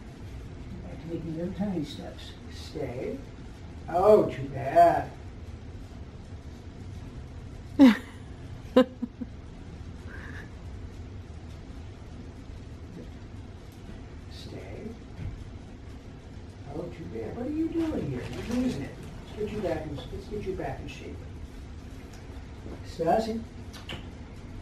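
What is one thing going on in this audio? An older man speaks calmly, giving short commands to a puppy.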